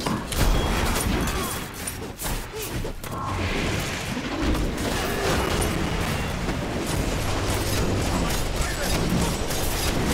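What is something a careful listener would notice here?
Magical blasts and crackling energy effects burst in a fast fight.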